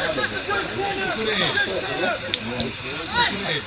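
Young men shout and cheer together outdoors.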